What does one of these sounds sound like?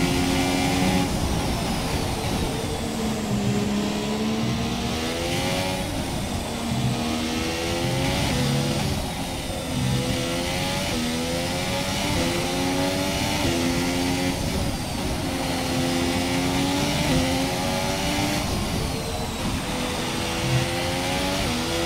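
A racing car engine whines loudly, rising and falling in pitch as it speeds up and shifts gears.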